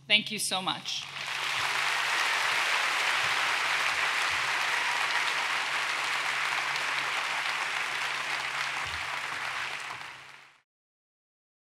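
A large crowd applauds steadily, then fades out.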